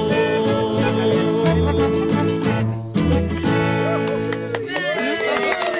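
Guitars and an accordion play a lively tune.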